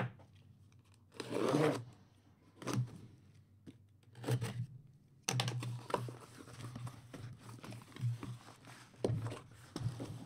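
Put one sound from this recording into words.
Hands scrape and tap against a cardboard box.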